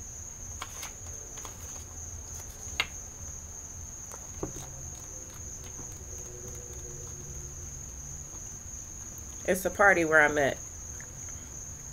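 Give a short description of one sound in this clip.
Cards shuffle and flick together.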